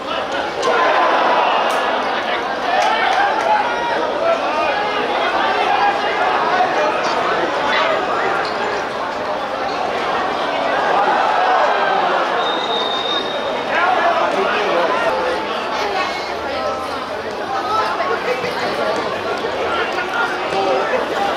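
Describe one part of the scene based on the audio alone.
A football thumps as players kick it.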